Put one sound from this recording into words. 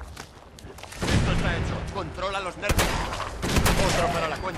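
A laser gun fires in rapid bursts.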